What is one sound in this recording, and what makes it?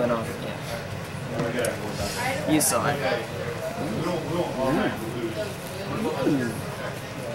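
Playing cards rustle and shuffle in a hand.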